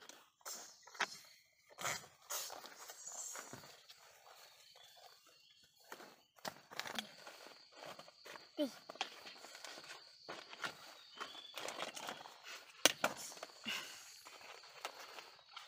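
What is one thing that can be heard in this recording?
Small plastic toys clatter and knock together close by.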